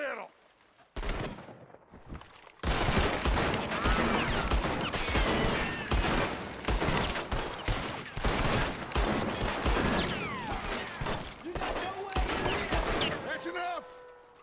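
Rifles and pistols fire in rapid, loud volleys.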